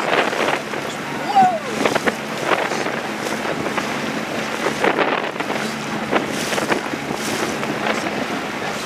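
Choppy water splashes and slaps against a boat's hull.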